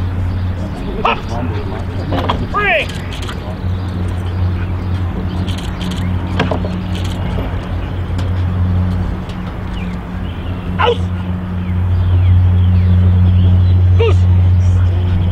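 A man calls out short commands to a dog outdoors.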